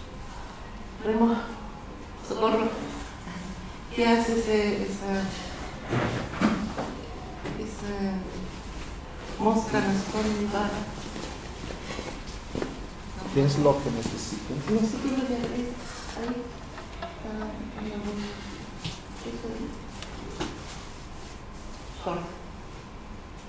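A middle-aged woman speaks with animation, close by.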